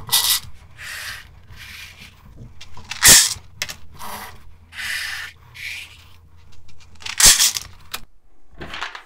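Plastic trays clack and knock against each other.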